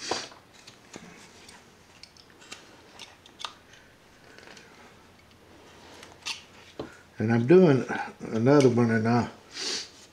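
A knife shaves and scrapes wood in small, crisp strokes.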